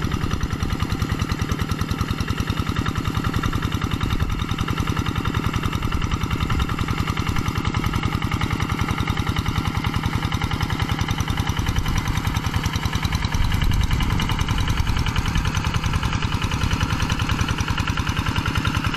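A small diesel engine chugs loudly and steadily close by.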